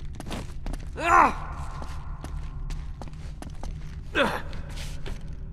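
A man grunts with effort while climbing.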